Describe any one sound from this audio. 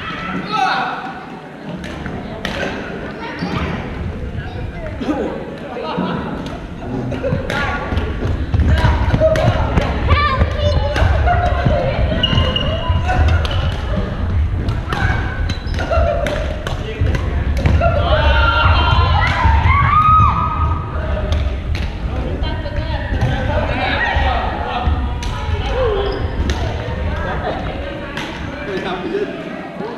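Shuttlecocks are struck with rackets in sharp, quick pops.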